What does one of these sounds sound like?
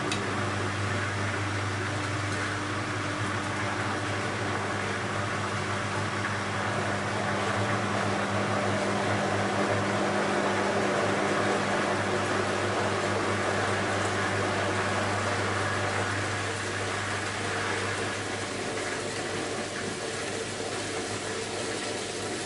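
Water and laundry slosh inside a turning washing machine drum.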